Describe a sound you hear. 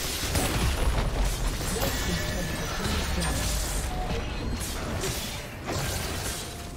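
Magic spells burst and crackle in a fight.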